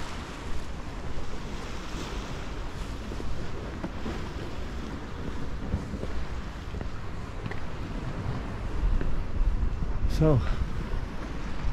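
Footsteps scuff on stone steps.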